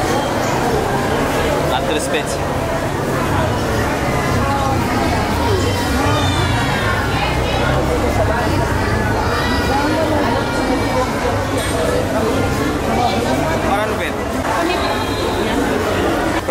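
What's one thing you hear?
Many men and women chatter around in a busy, echoing hall.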